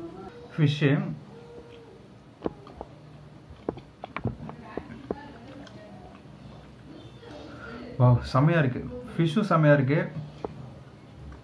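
A young man chews food with his mouth open.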